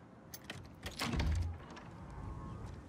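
A door bumps open.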